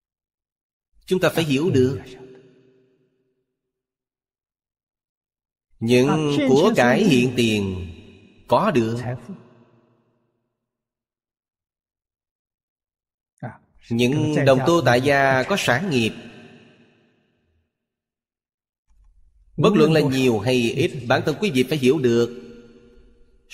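An elderly man speaks calmly into a close microphone, in short phrases with long pauses.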